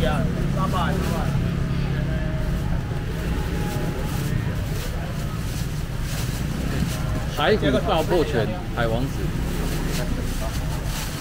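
Plastic bags rustle as they are handled.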